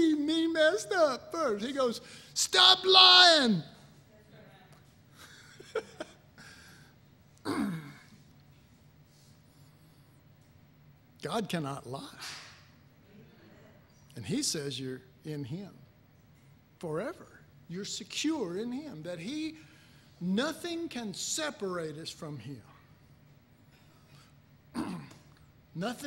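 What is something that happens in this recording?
A middle-aged man speaks with animation into a microphone, with long pauses.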